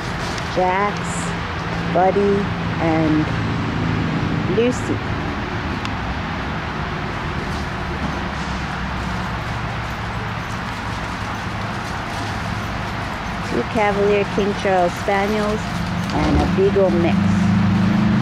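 Small dogs bark and yelp excitedly outdoors.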